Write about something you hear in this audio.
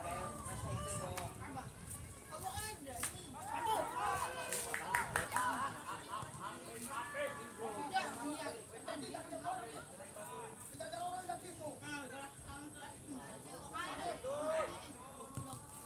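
Young men shout to each other across an open field in the distance.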